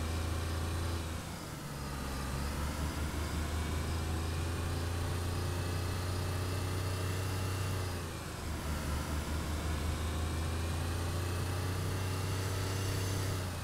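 A car engine hums steadily, easing off briefly and picking up again.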